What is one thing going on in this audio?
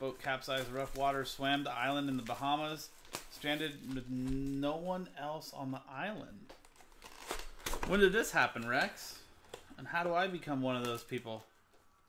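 Plastic wrap crinkles as it is torn open.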